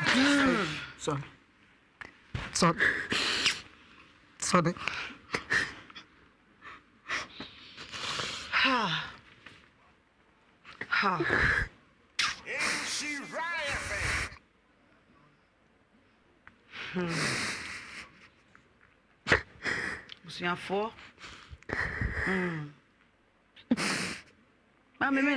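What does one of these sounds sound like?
A girl sobs and cries.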